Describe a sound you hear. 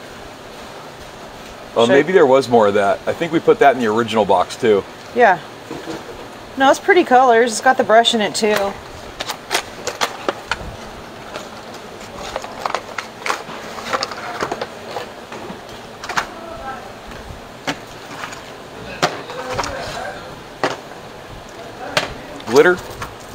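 Cardboard packaging rustles and clicks as it is handled.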